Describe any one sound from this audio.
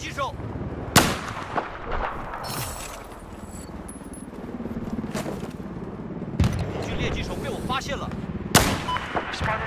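A sniper rifle fires a single sharp shot.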